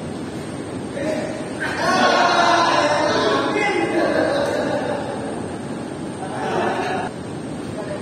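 Men call out and talk during play in a large echoing hall.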